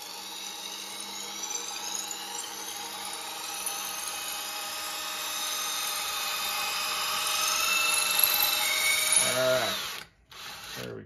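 A cordless drill whirs steadily, its whine slowly rising in pitch.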